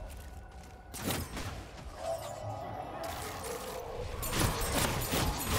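A weapon fires crackling bursts of energy.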